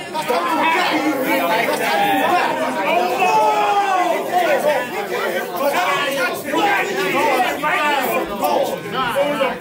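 A young man raps forcefully and close by.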